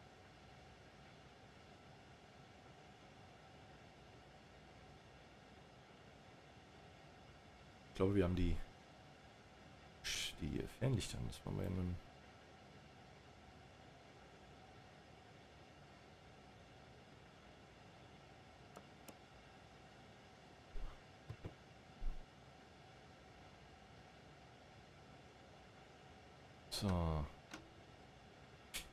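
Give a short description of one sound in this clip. A train rolls along the tracks with a steady electric hum.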